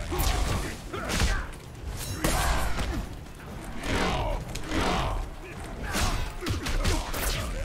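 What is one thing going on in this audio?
A young man speaks into a headset microphone.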